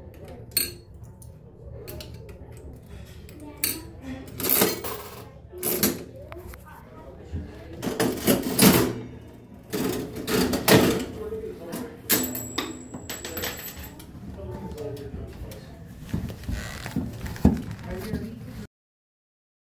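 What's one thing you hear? A slot machine's handle is pulled and its reels spin and clatter.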